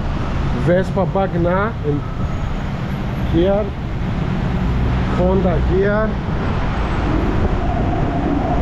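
Traffic rumbles steadily on a busy street below.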